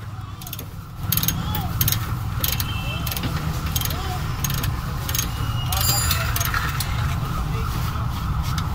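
Metal tools clink and scrape against car parts.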